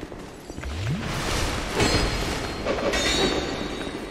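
A sword swings and clashes against armour.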